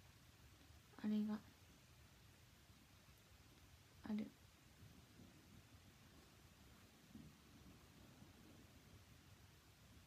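A young woman speaks softly and briefly, close to the microphone.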